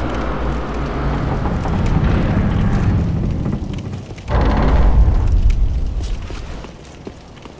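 Heavy stone doors grind and rumble open.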